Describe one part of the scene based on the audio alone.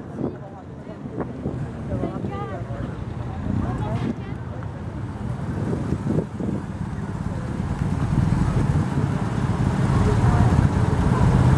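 Traffic rumbles steadily along a wide street outdoors and grows louder.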